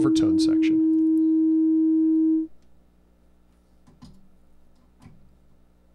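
A man plugs a patch cable into a synthesizer with a click.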